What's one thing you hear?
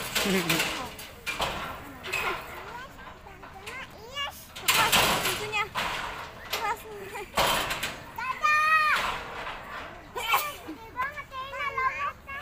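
A metal gate rattles and clanks as an elephant shoves against it.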